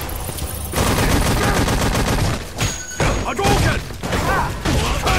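Punches and kicks land with heavy, sharp thuds.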